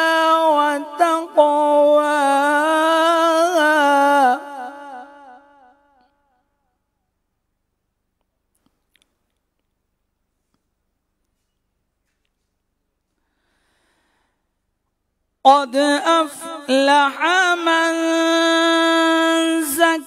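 A man chants melodically into a microphone, holding long notes, then pauses and begins again.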